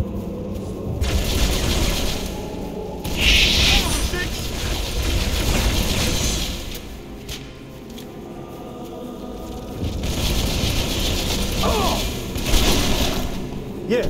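A plasma gun fires rapid crackling bursts.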